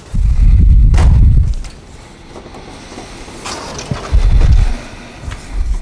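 A chalkboard slides along its rails with a low rumble.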